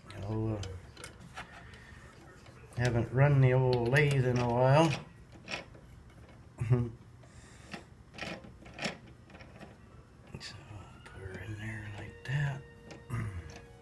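A chuck key clicks and scrapes against a metal lathe chuck.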